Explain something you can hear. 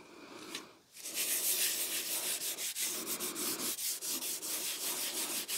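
A tool scrapes rhythmically across a metal surface.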